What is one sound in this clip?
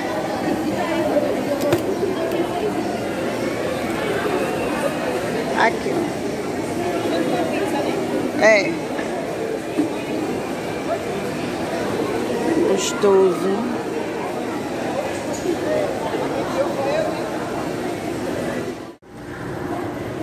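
A busy indoor crowd murmurs with many voices in the background.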